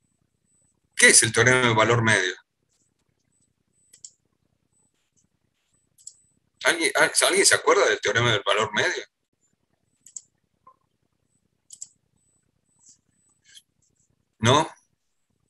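A middle-aged man speaks calmly in short bursts, heard through an online call.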